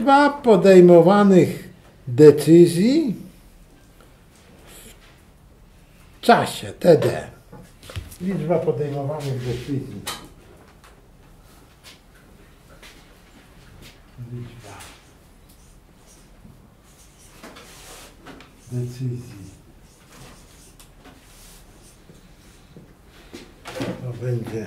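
An older man talks calmly, close by, pausing often.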